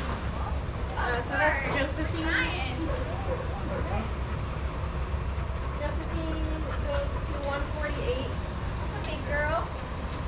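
Dogs whine and yelp close by.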